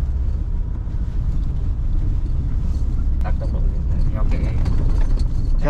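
Tyres crunch and rumble over a rough dirt road.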